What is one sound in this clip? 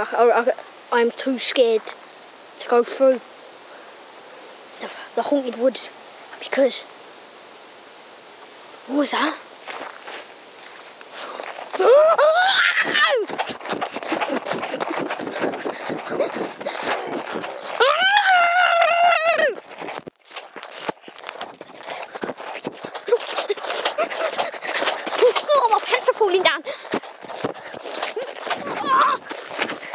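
A young boy talks close to a microphone, in short bursts.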